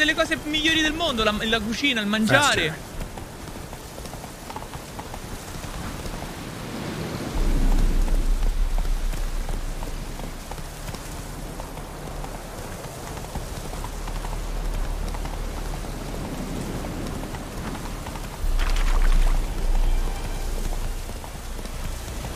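Horse hooves thud on a dirt path.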